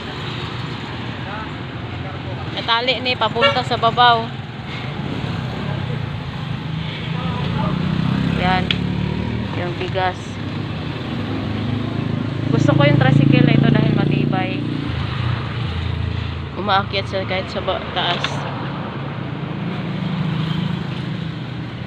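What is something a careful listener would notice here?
Motorbikes pass by on a nearby road.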